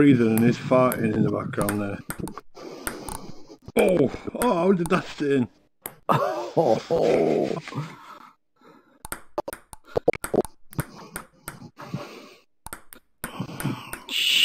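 A ping pong ball clicks sharply as it bounces on a table and is hit back and forth.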